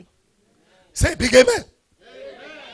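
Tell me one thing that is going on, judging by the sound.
A middle-aged man shouts loudly into a microphone.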